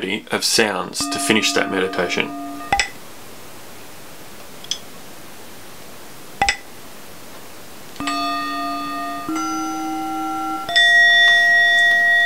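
Bell tones chime one after another.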